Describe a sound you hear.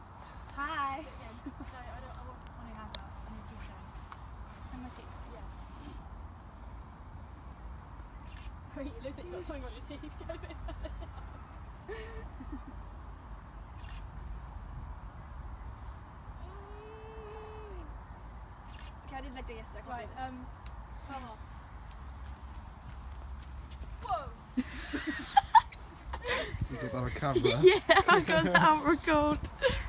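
Young women talk and laugh nearby outdoors.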